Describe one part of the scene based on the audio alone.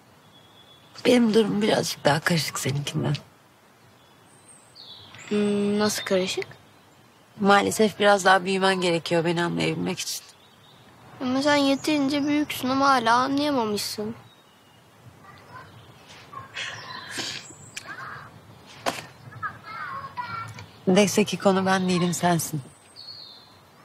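A young woman speaks softly and emotionally nearby.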